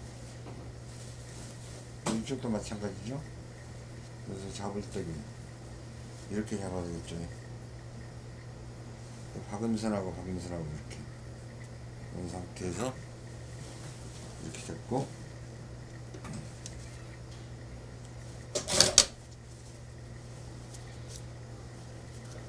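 Cloth rustles as hands handle fabric.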